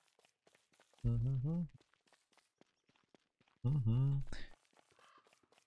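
A man speaks briefly into a microphone, close by, with animation.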